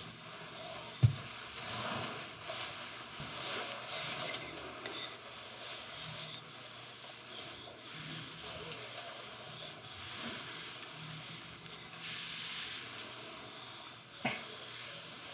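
A wooden rod knocks lightly a couple of times.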